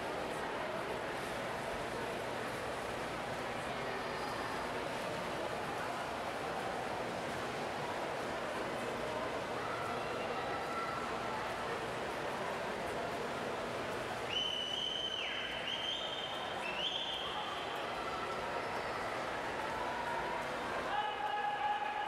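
Swimmers splash as they stroke through the water in an echoing indoor pool.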